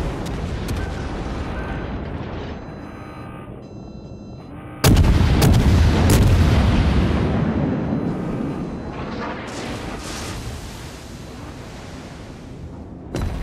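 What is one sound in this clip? Anti-aircraft guns pop rapidly.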